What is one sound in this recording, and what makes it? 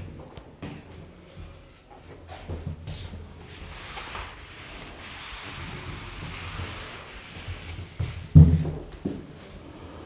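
A man lectures calmly, close by.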